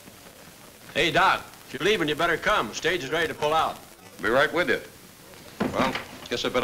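A man speaks firmly and deliberately.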